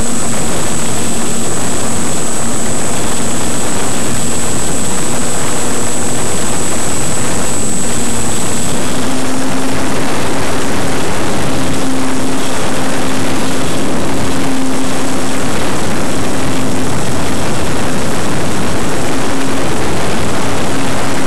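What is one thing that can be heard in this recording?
A small model plane's motor hums steadily, rising slightly in pitch partway through.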